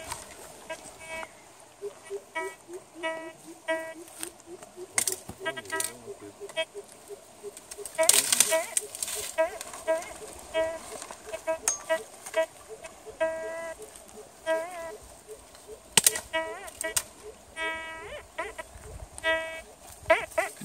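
A metal detector beeps in short pitched bursts.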